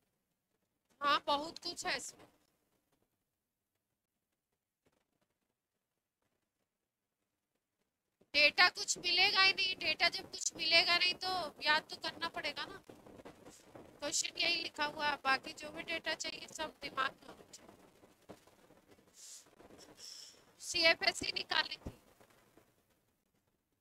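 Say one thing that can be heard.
A woman speaks calmly through a close microphone.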